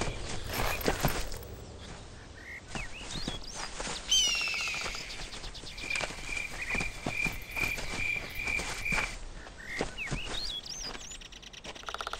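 Footsteps thud steadily on soft ground.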